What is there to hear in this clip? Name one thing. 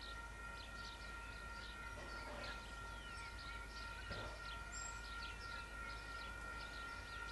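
A steam locomotive chuffs in the distance as it approaches.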